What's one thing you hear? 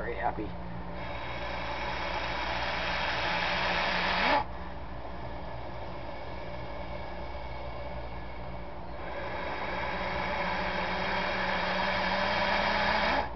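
A snake hisses loudly and steadily in long breaths.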